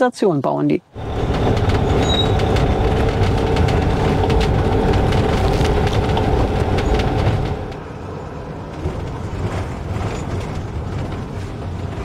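A vehicle's engine hums steadily as it drives along a rough road.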